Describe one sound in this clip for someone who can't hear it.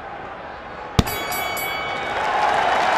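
A bell rings to end the round.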